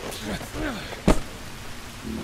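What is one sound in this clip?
A heavy blow thuds sharply.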